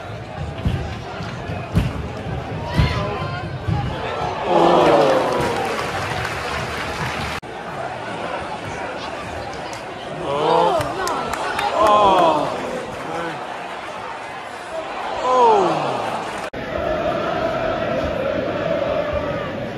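A large crowd murmurs and roars in an open stadium.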